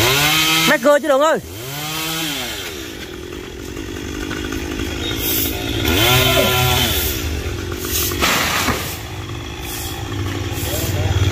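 A chainsaw engine revs up and down loudly.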